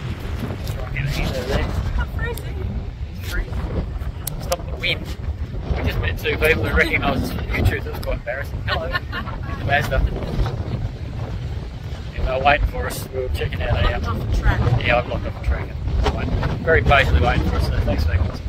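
A middle-aged man talks casually close to the microphone.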